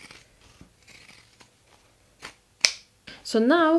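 Scissors snip through fabric.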